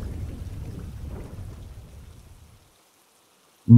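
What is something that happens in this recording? Heavy rain pours down steadily, then fades away.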